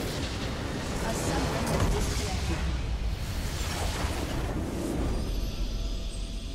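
A huge crystal shatters and explodes with a deep, roaring rumble.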